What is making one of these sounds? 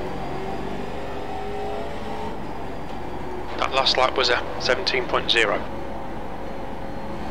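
A race car engine drones steadily.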